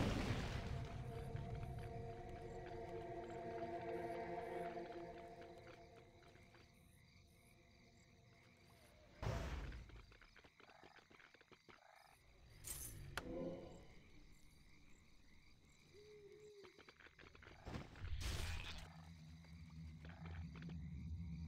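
Magic spells whoosh and burst.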